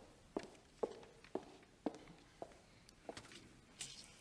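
Footsteps click on a hard floor in a large echoing hall.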